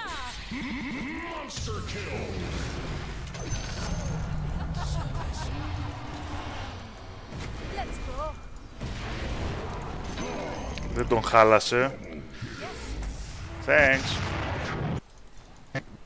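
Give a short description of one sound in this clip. Game spell effects whoosh, zap and boom.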